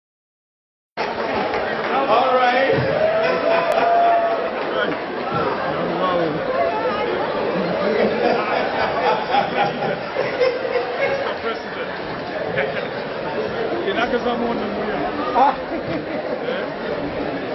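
A man speaks into a microphone over a loudspeaker in an echoing hall.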